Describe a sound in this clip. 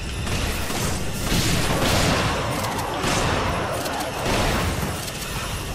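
Shotgun blasts ring out in a game.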